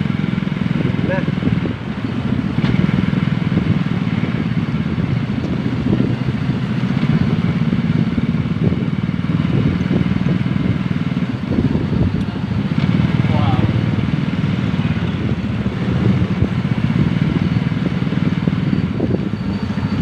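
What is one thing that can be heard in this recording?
A motor tricycle engine putters ahead.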